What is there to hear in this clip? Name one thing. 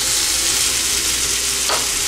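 A stove knob clicks as it turns.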